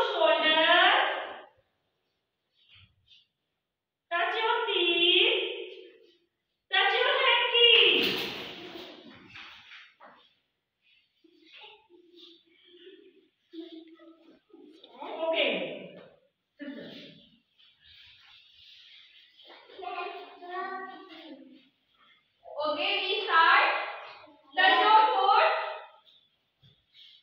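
A group of young children chant loudly together in short bursts in an echoing room.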